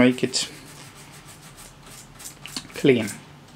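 A brush scrubs softly against tape.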